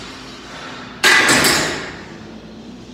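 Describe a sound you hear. A loaded barbell clanks hard into a metal rack and rings briefly.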